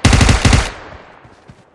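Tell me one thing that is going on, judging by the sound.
A rapid burst of gunfire rings out.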